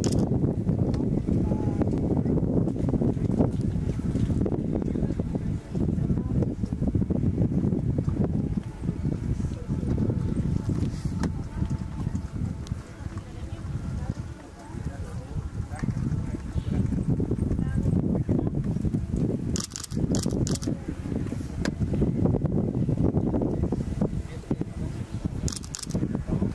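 Horses' hooves thud softly on sand.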